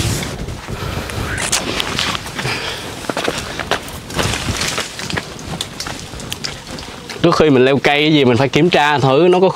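Leaves and branches rustle and snap as a man climbs through brush.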